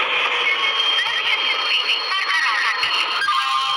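Train brakes squeal as the train slows.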